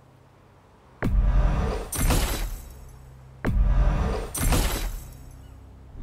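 A heavy metallic clank sounds with each purchase.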